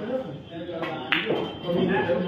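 A cue tip strikes a pool ball with a sharp click.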